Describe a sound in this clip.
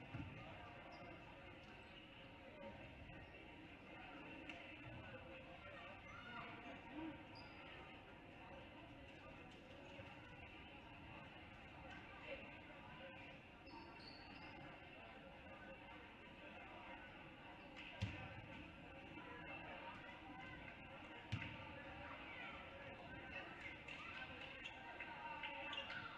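Basketballs bounce on a hardwood floor.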